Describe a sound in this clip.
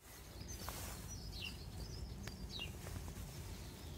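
Fingers scrape and crumble dry soil.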